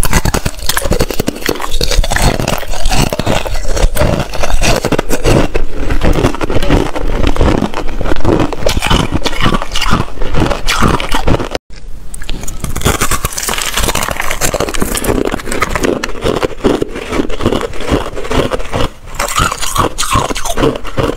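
A young woman crunches ice close to a microphone.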